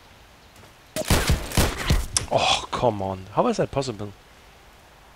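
Gunshots crack loudly in quick bursts.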